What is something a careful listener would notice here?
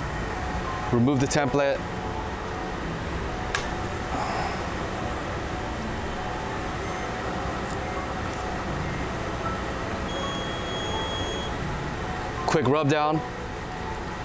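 A press machine clunks and hisses as it closes and opens.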